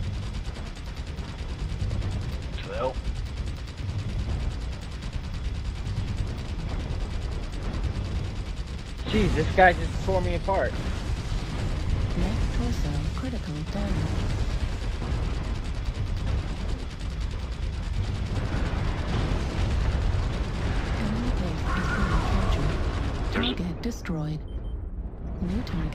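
Heavy machine guns fire in rapid, rattling bursts.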